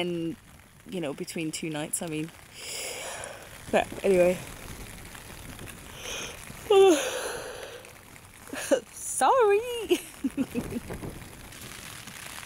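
A young woman talks close by, sleepily and with animation.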